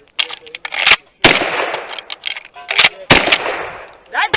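A pistol fires several loud shots outdoors.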